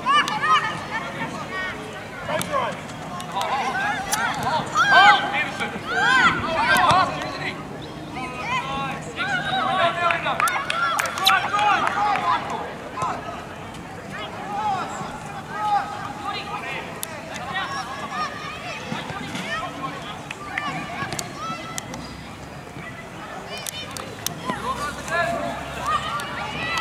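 Children shout and call out to each other across an open field.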